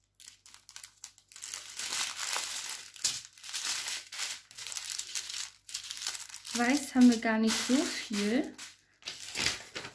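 Plastic bags crinkle and rustle as they are moved about.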